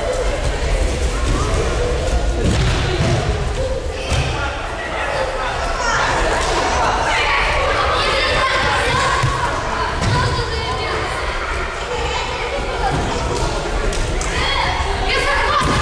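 Children's feet thud and patter as they run across mats.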